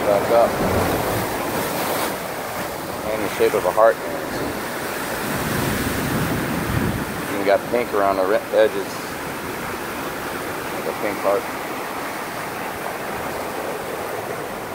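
Waves crash and churn against rocks, with a steady roar of surf.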